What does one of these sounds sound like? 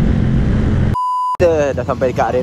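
A steady test tone beeps briefly.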